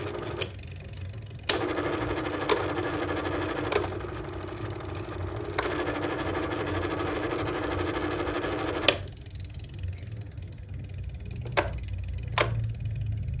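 A fan's knob clicks as it is turned.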